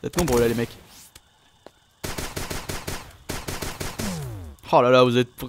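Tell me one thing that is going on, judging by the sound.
Small game weapons fire in quick bursts as creatures are hit.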